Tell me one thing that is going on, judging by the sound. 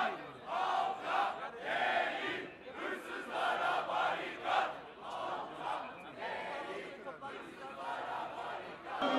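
A crowd of men murmurs and talks all around.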